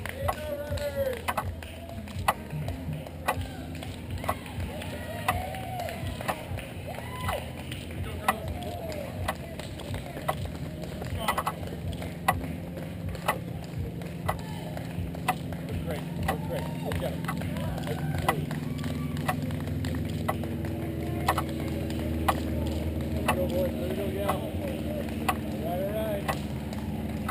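Runners' shoes patter on the road as they pass.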